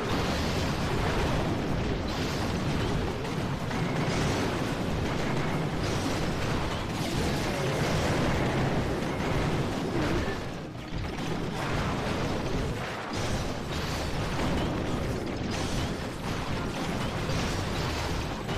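Game explosions boom and fire crackles steadily.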